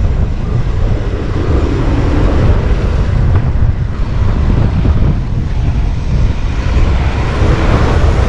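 A bus engine roars close by.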